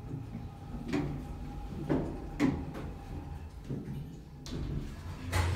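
Elevator doors slide shut with a soft rumble.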